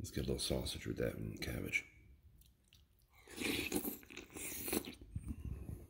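A spoon scrapes against a bowl.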